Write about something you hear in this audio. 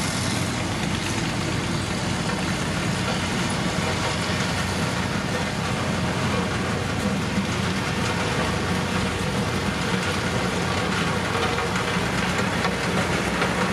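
Gravel crunches under a heavy roller drum.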